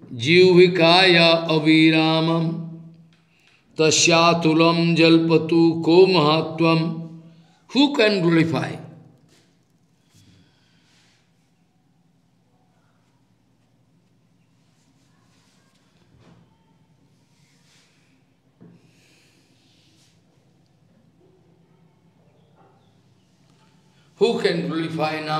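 An elderly man sings slowly into a microphone, in long held notes.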